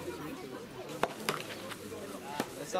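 Tennis rackets strike a ball with sharp pops outdoors.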